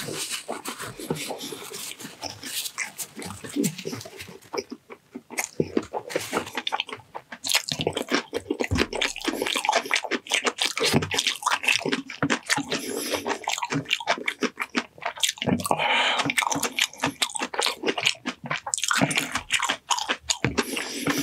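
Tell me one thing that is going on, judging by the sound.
Sticky food squelches and crackles between a man's fingers close to a microphone.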